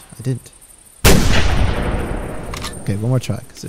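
A rifle shot cracks loudly and echoes away.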